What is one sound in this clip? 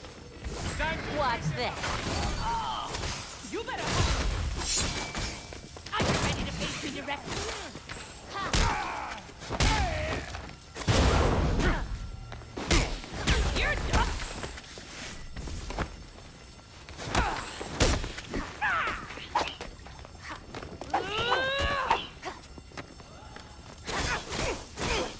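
Punches and kicks land with heavy, sharp thuds.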